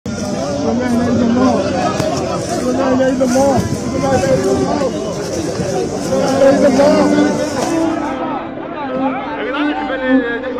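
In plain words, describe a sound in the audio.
A crowd of men shouts and talks excitedly outdoors.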